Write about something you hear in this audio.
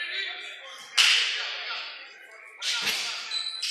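A basketball thuds on a wooden floor, echoing through the hall.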